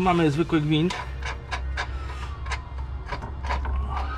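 Metal tools clink and knock against car parts.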